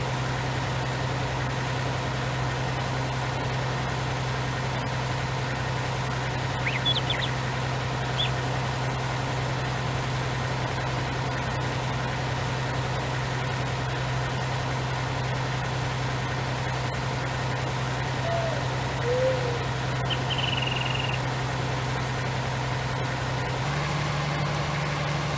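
A harvester engine drones steadily as it moves along.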